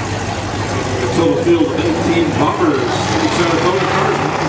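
A crowd of spectators murmurs and chatters close by.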